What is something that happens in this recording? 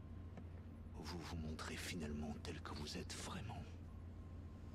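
An older man speaks in a low, grim voice.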